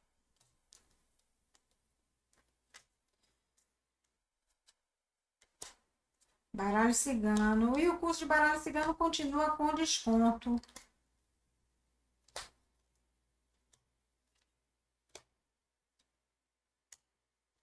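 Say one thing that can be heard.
Playing cards riffle and tap softly as they are shuffled and laid down.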